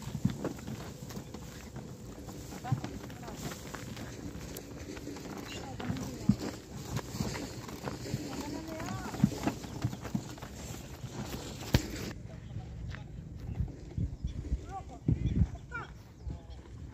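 Ox hooves thud on the dirt.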